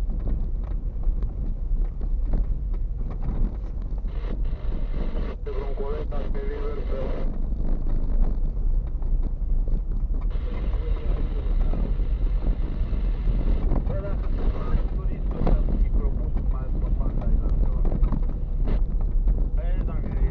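Tyres crunch and rattle over a bumpy dirt road.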